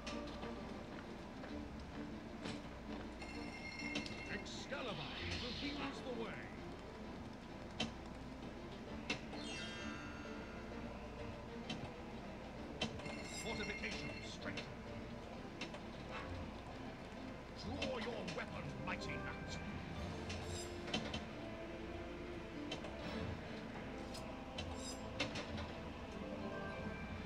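A pinball game plays electronic music.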